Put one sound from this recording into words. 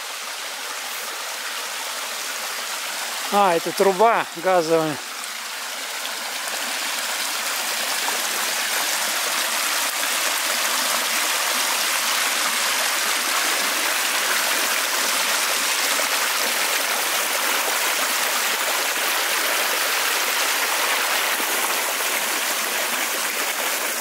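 Water rushes steadily over a small weir, growing louder up close.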